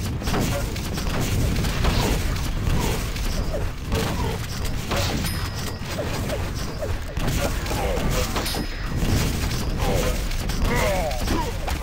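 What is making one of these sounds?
Video game rockets explode with loud blasts.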